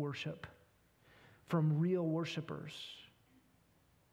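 A man speaks slowly and calmly into a microphone, with long pauses.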